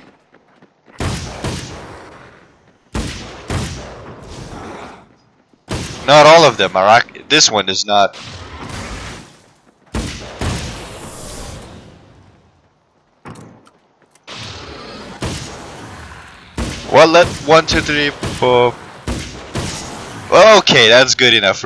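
Gunshots fire in sharp, echoing bursts.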